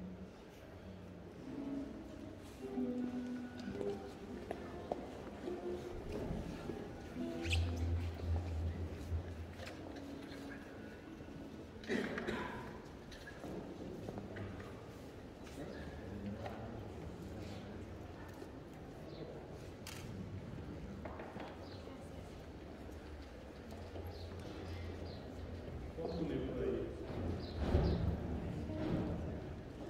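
A crowd murmurs softly in an echoing hall.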